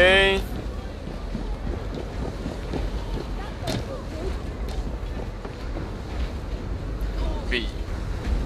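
Footsteps thud and clatter on metal and wooden walkways.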